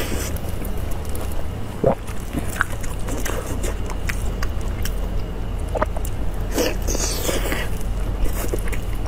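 Soft, sticky food squelches and tears close to a microphone.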